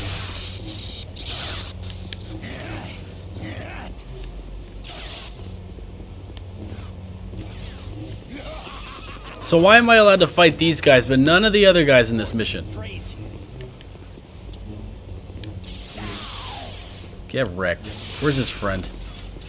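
A lightsaber swings with a whooshing sweep.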